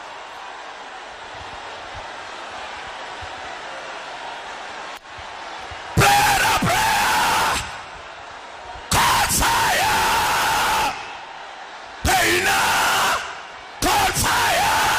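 A crowd of women and men sing and shout loudly in bursts.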